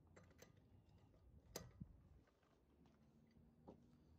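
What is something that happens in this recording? A metal wrench clanks on a wheel's nuts.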